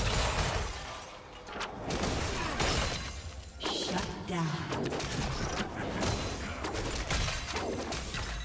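Magic spells crackle and burst in a fast battle.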